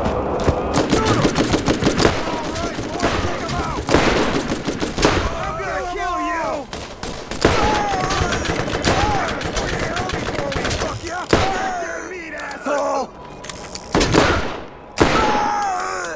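A pistol fires loud shots that ring out.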